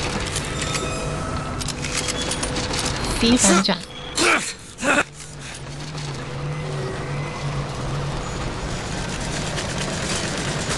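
A hook grinds and rattles along a metal rail.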